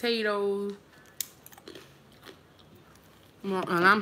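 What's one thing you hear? A young woman crunches a chip.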